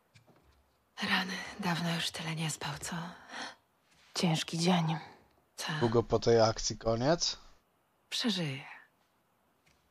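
A young woman speaks softly and warmly.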